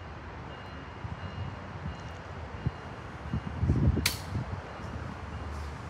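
Train cars clank and thump as the train slowly rolls.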